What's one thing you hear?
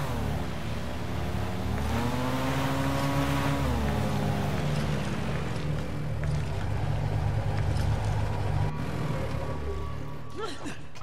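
A boat motor drones loudly and rises in pitch.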